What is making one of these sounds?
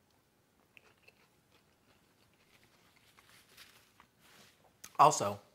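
A man chews food with soft crunching.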